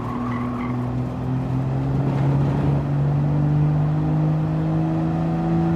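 A racing car engine roars steadily and slowly rises in pitch as the car speeds up.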